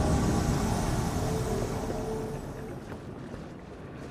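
A deep magical whoosh swells and fades.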